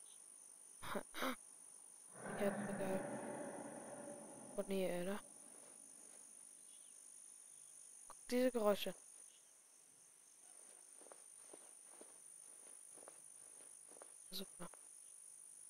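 Footsteps rustle through tall grass and crunch on a dirt path.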